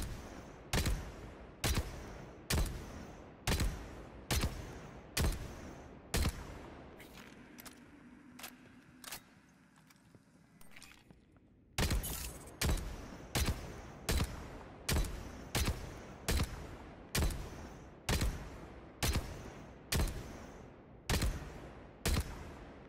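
Gunshots fire one by one at a steady pace, ringing with a short echo.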